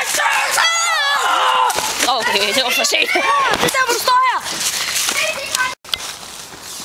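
A young boy shouts excitedly close by.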